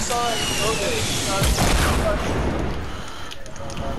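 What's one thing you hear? Wooden walls and ramps are built with rapid clattering knocks.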